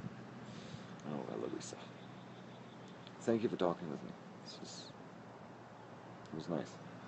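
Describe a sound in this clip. A man speaks calmly in short phrases close by.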